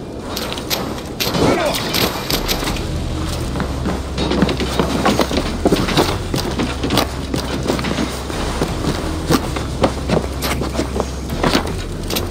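Footsteps thud quickly over wooden boards and dry ground.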